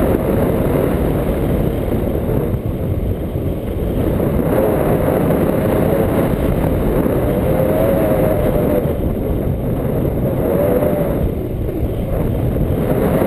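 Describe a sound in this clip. A paramotor engine drones steadily.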